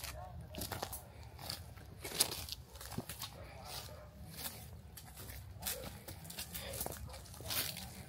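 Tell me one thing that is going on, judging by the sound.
Footsteps crunch on dry leaves and twigs outdoors.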